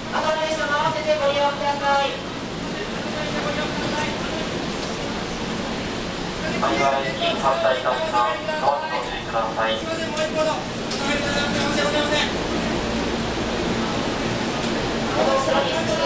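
A stopped train hums steadily.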